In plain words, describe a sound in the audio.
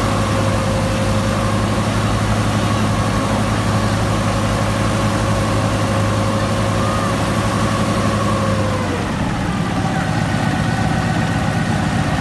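A radial aircraft engine runs loudly close by, with a deep rumbling roar that drops in pitch near the end.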